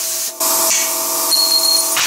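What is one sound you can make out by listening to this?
A hammer clanks against metal.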